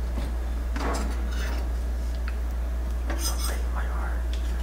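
Metal cutlery clinks and rattles in a drawer.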